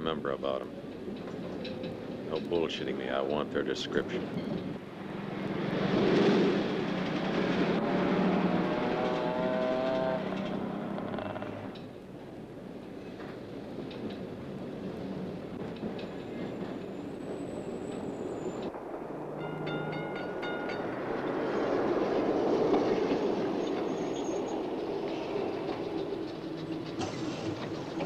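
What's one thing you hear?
City traffic rumbles steadily.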